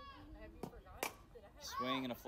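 A softball smacks into a catcher's glove.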